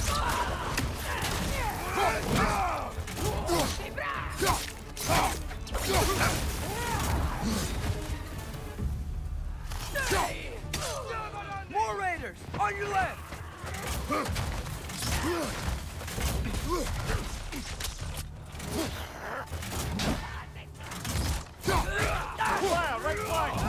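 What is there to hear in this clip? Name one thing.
Heavy blows strike with sharp thuds.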